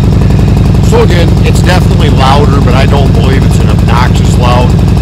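A middle-aged man talks with animation close by, over the engine.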